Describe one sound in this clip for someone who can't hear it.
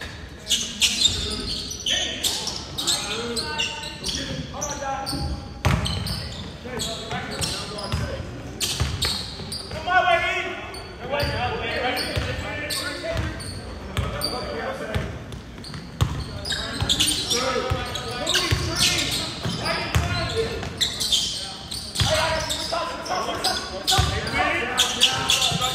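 Young men shout and call out to each other.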